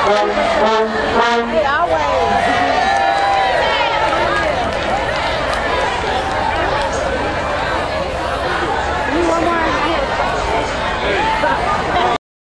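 A large crowd chatters and shouts throughout.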